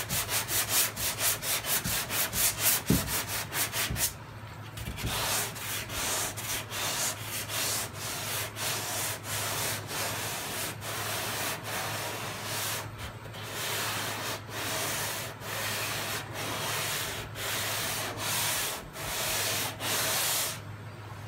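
Sandpaper scrapes back and forth in quick, rhythmic strokes.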